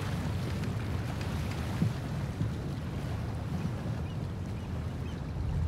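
Gentle waves lap against a sailing boat's hull.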